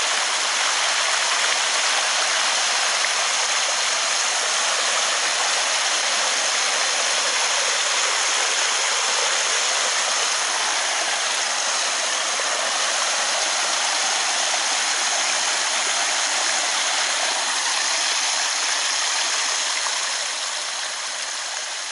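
Water splashes and trickles steadily into a pond.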